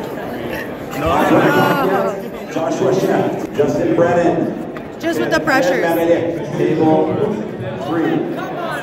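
Young people cheer and shout loudly.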